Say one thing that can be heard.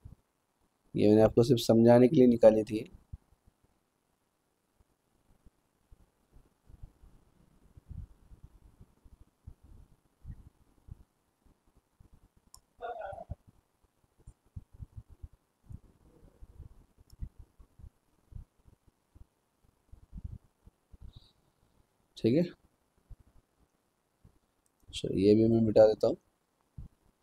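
A man speaks calmly and close to a microphone, in short bursts with long pauses.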